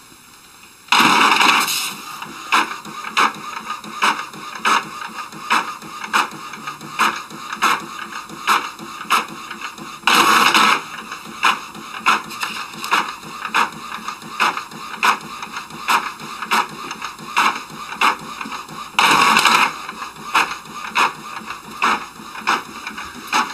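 A printer whirs and clicks in a steady rhythm as it prints.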